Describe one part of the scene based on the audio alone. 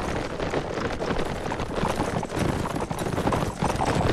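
Horses' hooves thud and pound on the ground close by.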